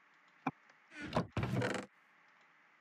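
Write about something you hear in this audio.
A wooden chest creaks shut and then creaks open again.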